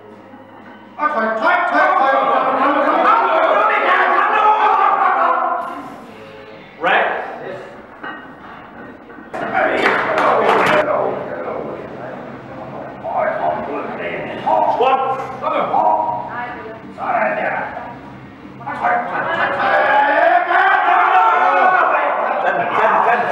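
Several men shout loud encouragement in an echoing room.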